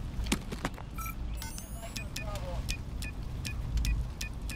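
Electronic beeps chirp as buttons are pressed on a device.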